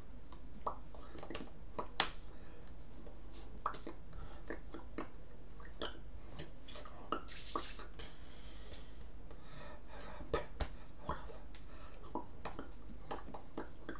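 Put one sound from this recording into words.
Hands tap and brush against each other close by.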